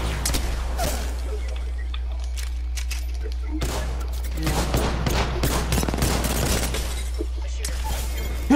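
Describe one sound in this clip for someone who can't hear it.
Rapid gunfire cracks in quick bursts.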